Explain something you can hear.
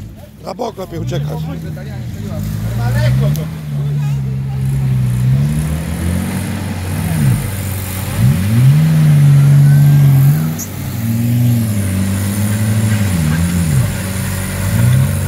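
An engine revs and labours as a vehicle strains in the mud.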